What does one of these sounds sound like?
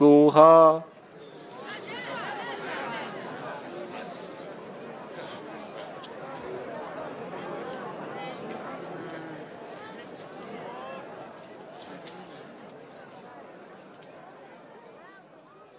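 A crowd of men and women murmurs and chatters.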